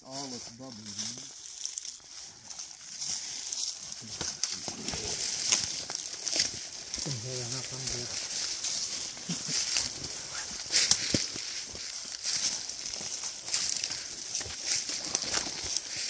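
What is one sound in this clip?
Footsteps crunch and rustle through dry undergrowth and leaves.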